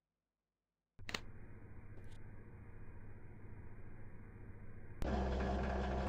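Elevator doors slide shut with a low rumble.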